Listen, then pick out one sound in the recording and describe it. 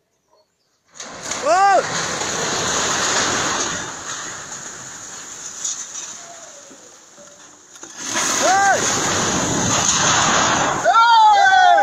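A building collapses with a loud rumbling crash.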